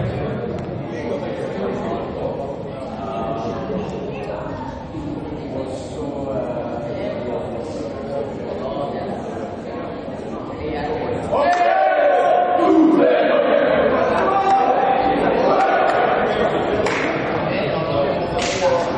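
Young men talk and call out to each other in an echoing hall.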